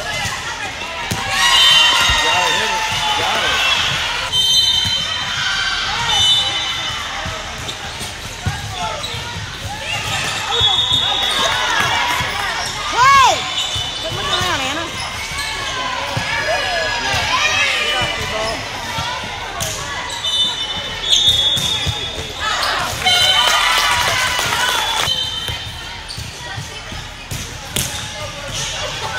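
Young women shout and call out across a large echoing gym.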